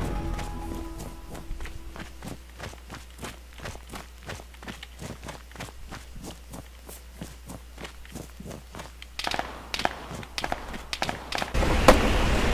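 Footsteps crunch steadily on rocky ground.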